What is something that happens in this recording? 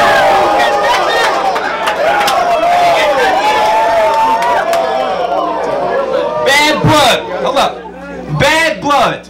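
A young man raps loudly and rhythmically through a microphone in a noisy room.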